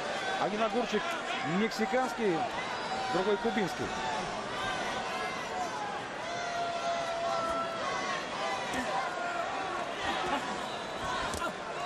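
A large crowd cheers and shouts in a big arena.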